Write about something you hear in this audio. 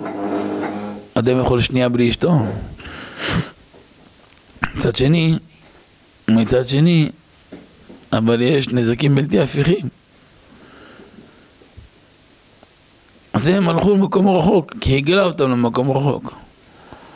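A middle-aged man speaks calmly into a microphone, in phrases with pauses.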